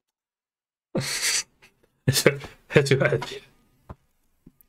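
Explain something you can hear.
A young man laughs loudly, close to a microphone.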